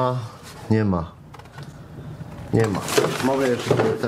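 A cardboard sheet flexes and scrapes.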